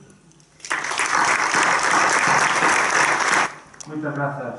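People applaud in a large hall.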